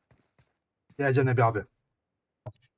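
A man speaks loudly and briefly into a close microphone.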